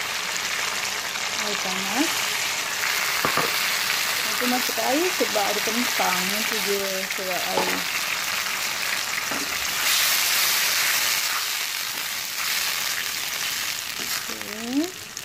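Onions sizzle and crackle loudly in hot oil.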